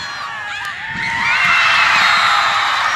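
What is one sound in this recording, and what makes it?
A crowd of spectators cheers and shouts outdoors.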